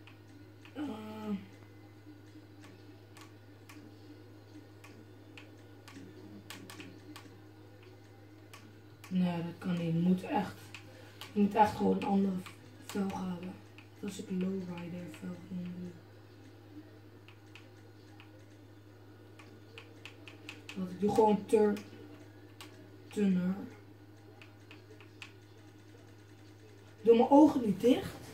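Soft clicks sound from a television speaker again and again.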